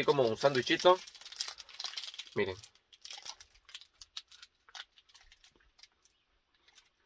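Foil wrapper crinkles in a man's hands.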